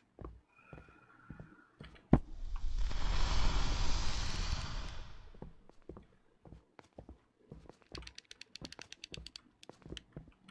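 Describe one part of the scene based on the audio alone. Footsteps tap on a hard tiled floor.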